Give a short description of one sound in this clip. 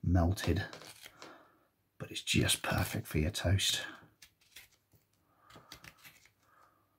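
A knife shaves thin curls from a piece of wood.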